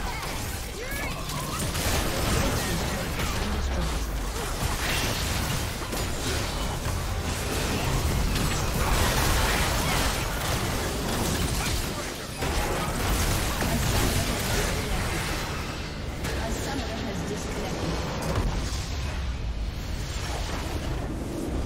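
Video game battle effects crackle and boom with blasts and magic.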